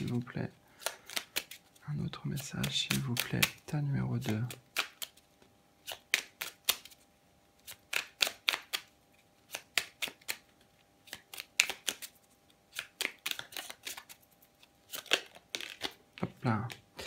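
Playing cards riffle and flick softly as a deck is shuffled by hand.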